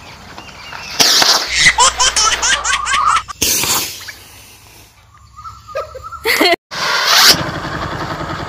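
A firework rocket hisses and whooshes into the air.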